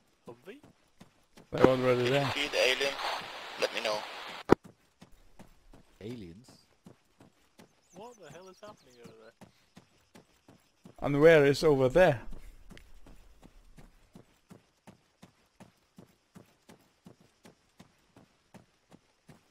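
Footsteps tread steadily through dry grass.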